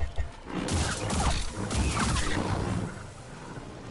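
Energy blades hum and clash in a fight.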